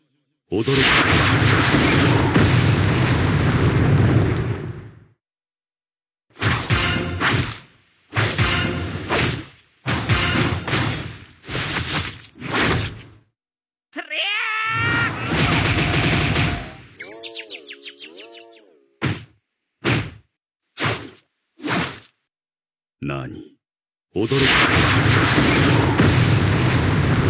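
Sword slashes and blasts crash loudly in bursts.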